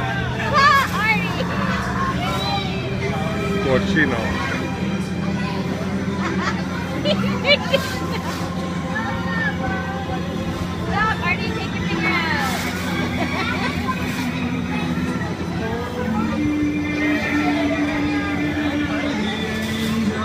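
Adults and small children chatter and call out nearby.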